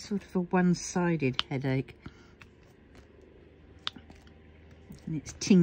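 A small tool taps lightly on tiny plastic beads.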